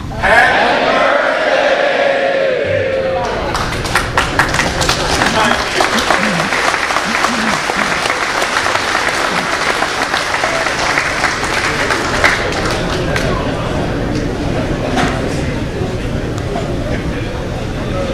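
A man auctioneers in a rapid chant over a loudspeaker in a large echoing hall.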